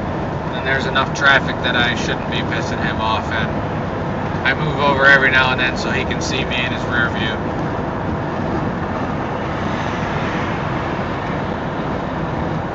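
A vehicle's tyres rumble steadily on a highway.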